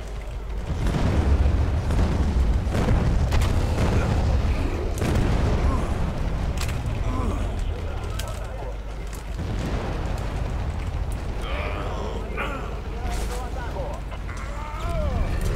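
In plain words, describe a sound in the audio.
Gunfire crackles in sharp bursts.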